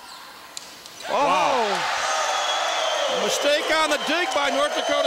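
A crowd in a large echoing gym cheers loudly.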